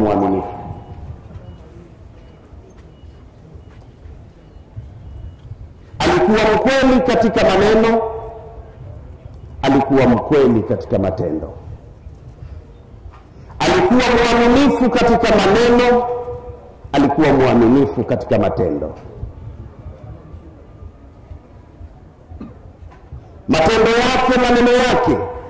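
A man preaches loudly and with animation into microphones, in bursts with pauses between.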